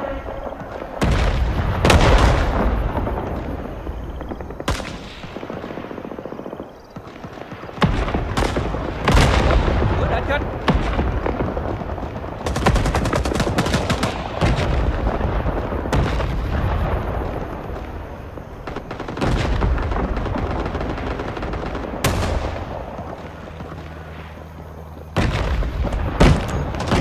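A machine gun fires loud bursts close by, echoing outdoors.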